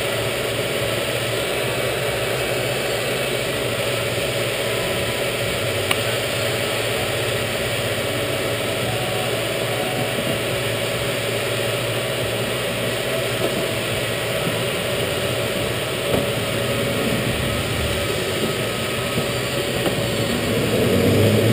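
Go-kart engines hum steadily at idle in a large echoing hall.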